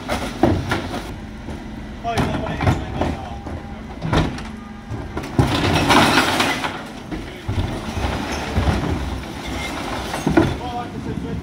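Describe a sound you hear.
Plastic wheelie bins bang and clatter against a truck's lift.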